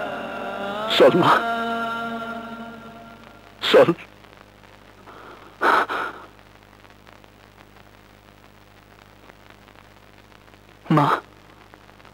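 An elderly woman cries out in sobs close by.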